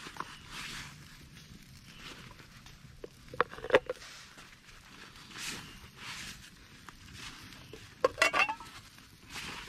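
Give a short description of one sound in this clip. A lid clicks and taps as a small container is opened and closed.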